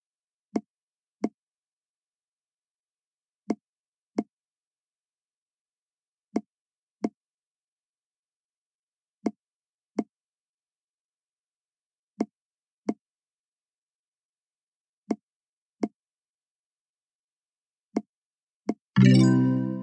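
Game balls click softly into place in pairs.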